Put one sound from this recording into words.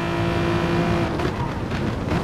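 A racing car engine drops in pitch at a gear change.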